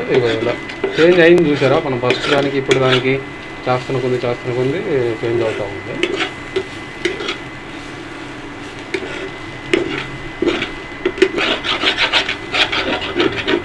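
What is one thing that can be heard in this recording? A metal spatula scrapes and clinks against a metal pan.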